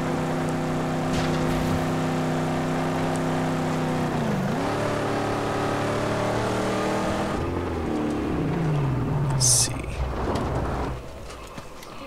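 A car engine roars steadily, then winds down.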